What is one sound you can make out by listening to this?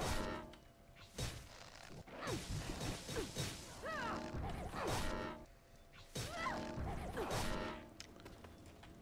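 Magic spells whoosh and burst with crackling hits in a fight.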